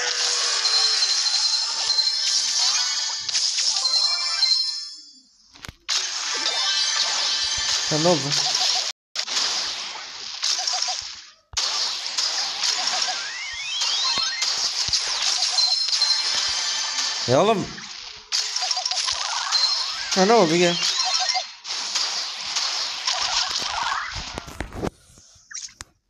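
Game sound effects of shots and blasts crackle and pop.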